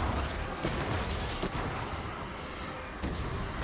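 A bright beam zaps down with a sharp hum.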